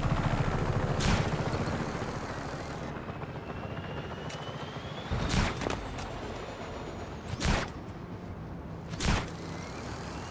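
A grappling hook fires and clanks against metal several times.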